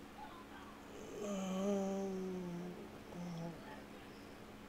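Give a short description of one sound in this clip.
A young man groans in frustration close to a microphone.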